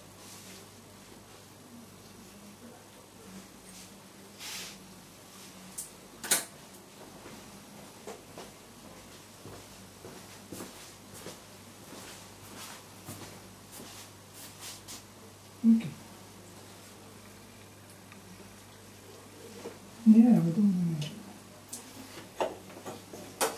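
Metal surgical instruments click and clink softly.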